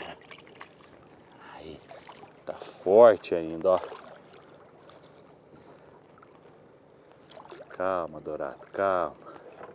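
Water splashes as a fish is lowered into it.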